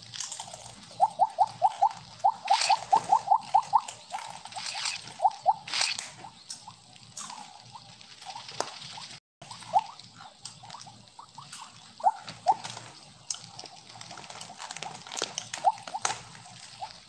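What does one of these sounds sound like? Quick, high popping chirps come in bursts as a game snake eats glowing pellets.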